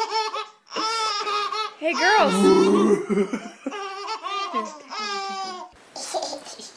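Babies giggle and laugh loudly up close.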